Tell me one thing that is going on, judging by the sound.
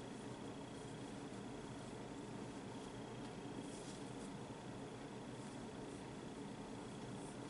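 A crochet hook softly rustles as yarn is pulled through stitches.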